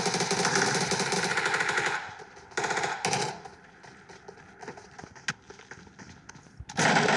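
Footsteps patter quickly on the ground.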